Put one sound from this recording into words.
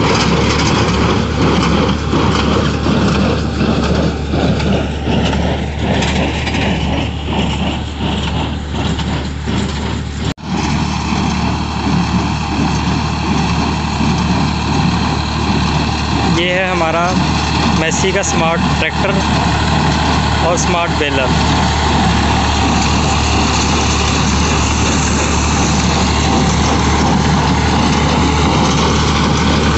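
A hay baler clanks rhythmically as it packs straw.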